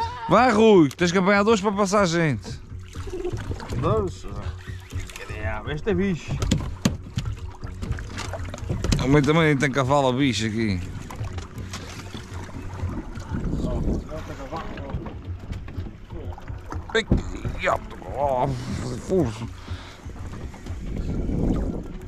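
Water laps against a boat's hull.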